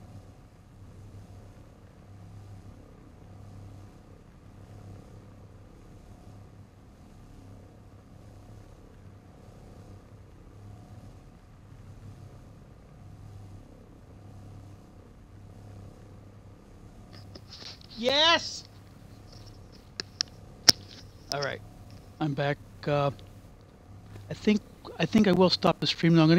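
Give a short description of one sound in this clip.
A hovering vehicle's engine hums steadily at idle.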